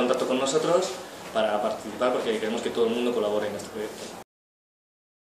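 A young man speaks calmly and clearly close by.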